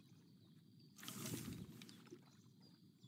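A fishing rod swishes through a cast.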